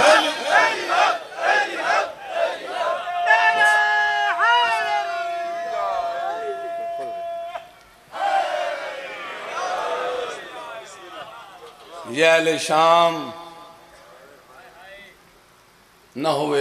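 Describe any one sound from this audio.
A man chants loudly through a microphone with echo, in a sung, drawn-out voice.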